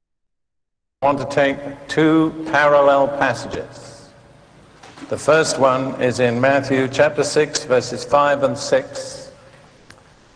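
An elderly man preaches into a microphone, heard through a loudspeaker.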